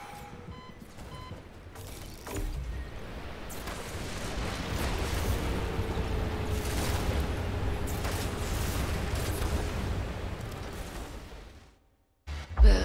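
Heavy footsteps clang on a metal floor.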